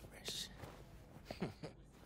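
Fabric rustles as a collar is straightened.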